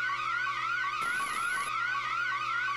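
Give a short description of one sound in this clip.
Electronic static crackles briefly.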